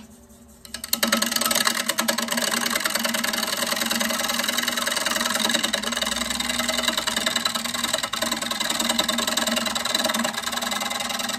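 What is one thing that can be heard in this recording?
A turning chisel scrapes loudly and steadily against spinning wood.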